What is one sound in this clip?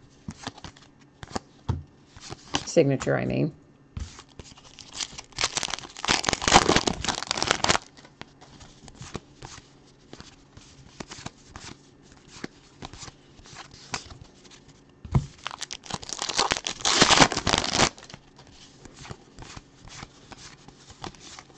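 Trading cards flick and shuffle in hands with quick soft clicks.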